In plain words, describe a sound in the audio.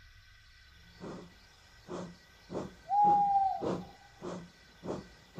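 A steam engine chuffs steadily as it pulls away.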